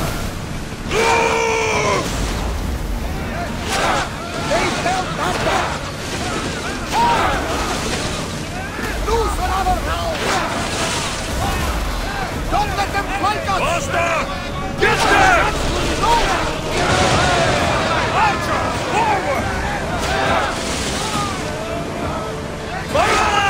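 Cannons fire in loud booming volleys.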